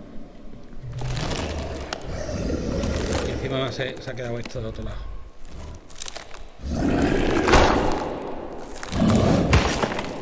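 A large creature twists and creaks with a deep rumble.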